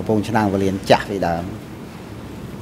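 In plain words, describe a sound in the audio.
A man speaks briefly into a microphone.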